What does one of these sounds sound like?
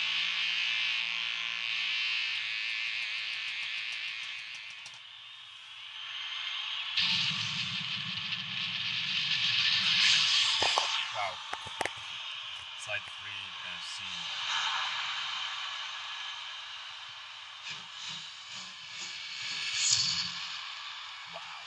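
Rock music plays from a television speaker.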